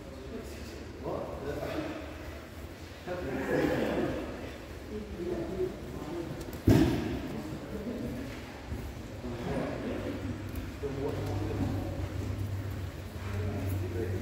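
A man talks calmly, explaining, in a large echoing hall.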